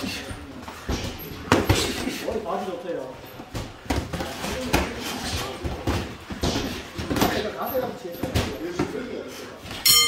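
Boxing gloves thud sharply against each other in quick bursts.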